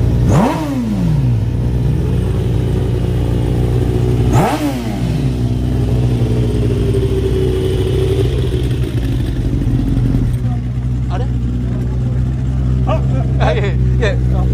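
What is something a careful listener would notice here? A motorcycle engine idles loudly and steadily.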